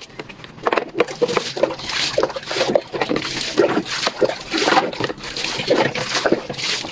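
Water splashes and pours from a jug.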